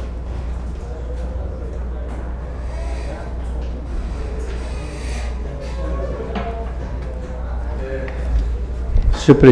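Faint voices murmur in a large hall.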